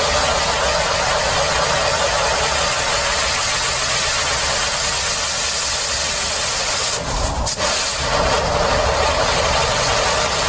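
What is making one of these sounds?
A firework fountain hisses and crackles loudly.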